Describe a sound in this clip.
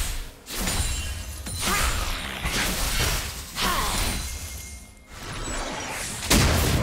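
Spell effects whoosh and crackle in a video game battle.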